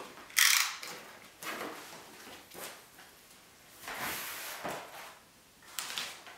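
Cardboard scrapes and thumps as a box flap is lifted and moved.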